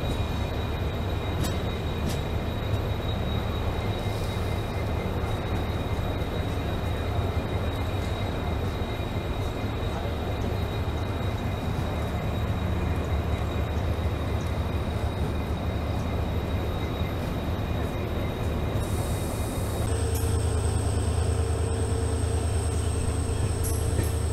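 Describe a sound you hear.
A diesel locomotive engine rumbles steadily close by.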